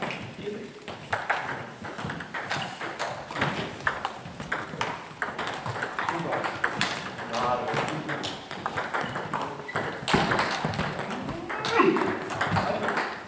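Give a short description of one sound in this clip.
Table tennis balls click sharply against paddles and tables, echoing in a large hall.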